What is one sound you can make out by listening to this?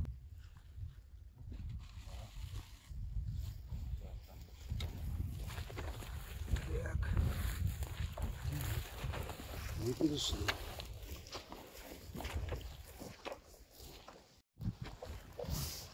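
Boots squelch and rustle through wet marsh grass.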